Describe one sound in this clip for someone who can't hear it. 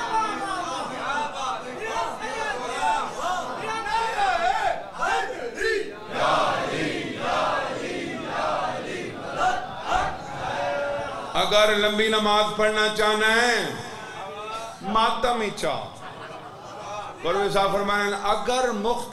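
A man speaks with passion into a microphone, heard through a loudspeaker.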